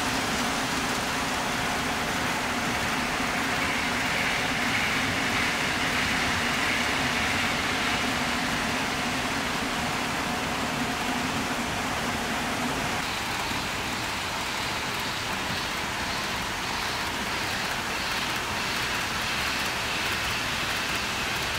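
Model trains whir and rattle along their tracks.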